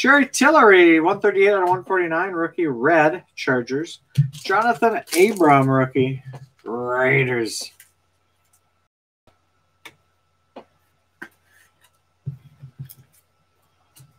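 Cards in plastic sleeves rustle and tap softly in hands.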